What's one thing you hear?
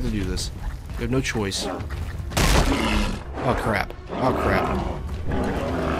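A bear roars up close.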